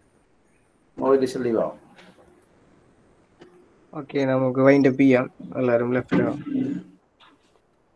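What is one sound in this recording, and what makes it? A man speaks over an online call.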